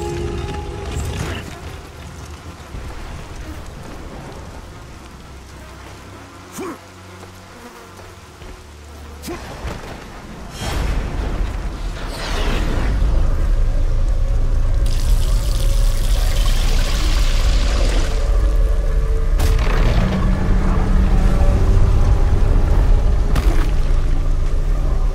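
Heavy rain pours steadily.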